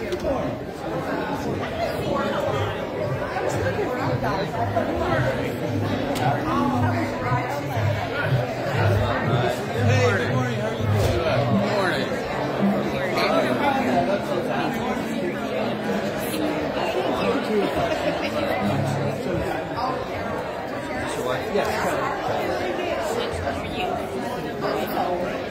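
A crowd of adults chatters in a large echoing room.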